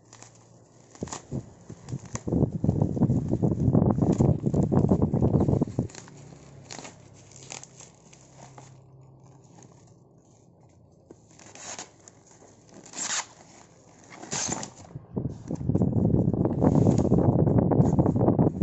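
Plastic wrapping crinkles and rustles close by as hands handle a package.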